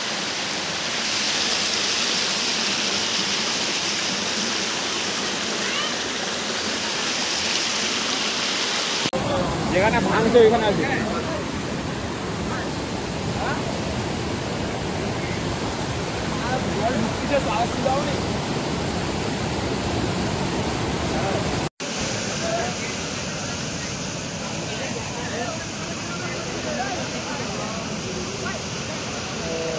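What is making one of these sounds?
Floodwater roars through a breached embankment.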